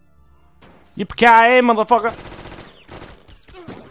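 Gunshots bang in quick succession.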